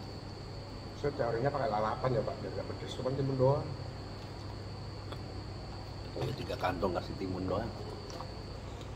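A man speaks casually nearby.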